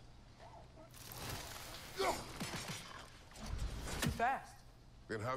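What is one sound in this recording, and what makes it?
An axe whooshes through the air and thuds.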